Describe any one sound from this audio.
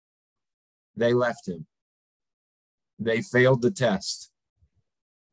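A middle-aged man speaks calmly and briefly through an online call.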